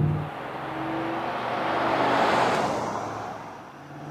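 Tyres whoosh on the road as a truck passes.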